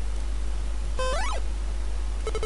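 A short rising electronic chirp sounds from a video game.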